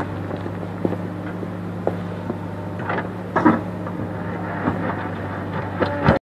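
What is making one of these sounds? Rocks and gravel scrape and clatter under a loader bucket.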